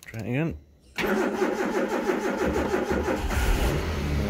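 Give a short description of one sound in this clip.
A car engine's starter motor cranks rapidly.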